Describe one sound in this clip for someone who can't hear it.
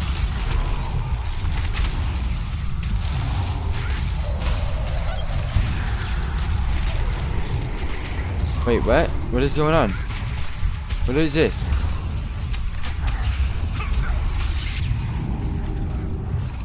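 Magic spells whoosh and crackle in a fight.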